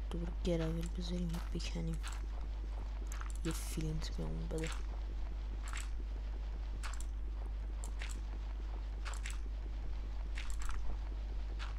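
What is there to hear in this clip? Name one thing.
Gravel crunches in short bursts as blocks are dug out.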